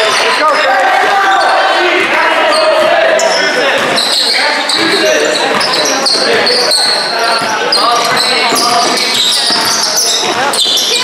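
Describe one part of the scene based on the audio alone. A crowd of spectators talks and calls out in a large echoing hall.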